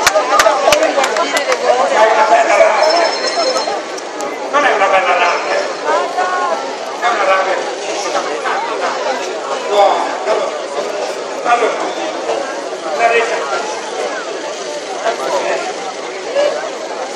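A man speaks with animation through a loudspeaker, echoing off buildings.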